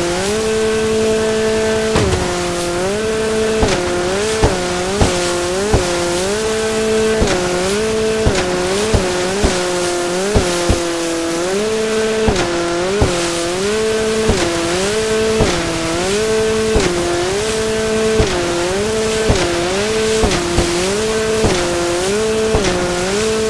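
A jet ski engine drones and revs up and down over and over.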